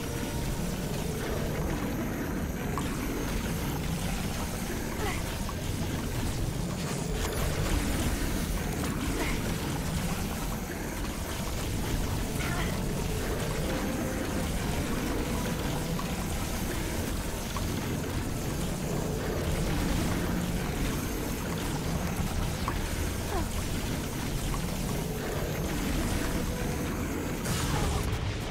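A game weapon fires rapid energy blasts.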